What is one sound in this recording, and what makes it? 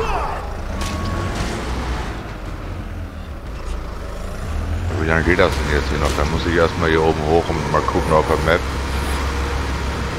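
A heavy diesel engine rumbles low and steadily.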